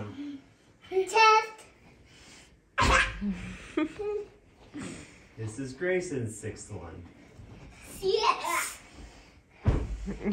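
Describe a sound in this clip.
Young children shriek and laugh excitedly.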